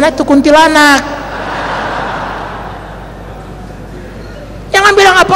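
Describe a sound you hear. A man speaks loudly and animatedly into a microphone in a large hall.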